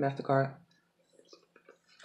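A woman chews and smacks food close up.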